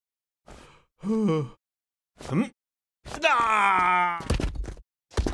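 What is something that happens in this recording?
A man shouts a loud, rising battle cry.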